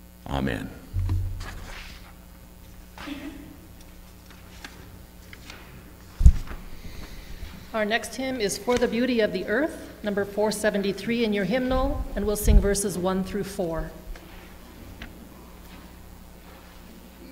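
Paper pages rustle as they are handled.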